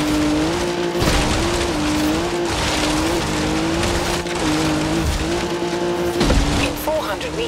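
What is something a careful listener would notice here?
A car thuds as it lands after a jump.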